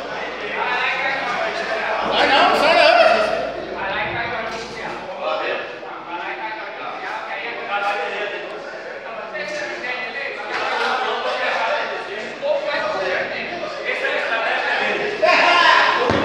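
Several men talk loudly over one another in an echoing hall.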